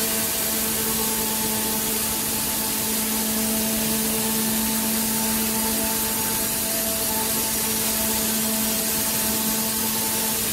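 A router bit cuts into wood with a rough whirring.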